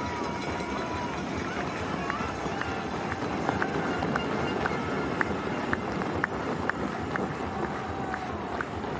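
Many running shoes patter quickly on pavement.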